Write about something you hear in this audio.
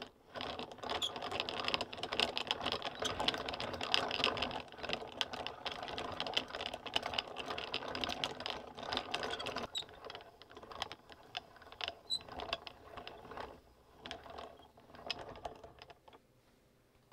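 A yarn winder whirs and rattles as it spins.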